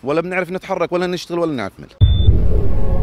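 A man speaks into a microphone outdoors.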